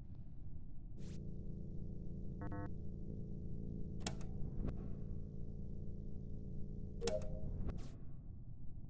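An electric hum buzzes steadily in a game.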